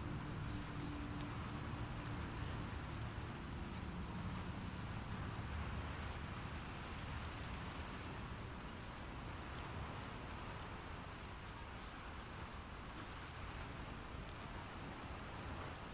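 A safe's combination dial clicks softly as it turns.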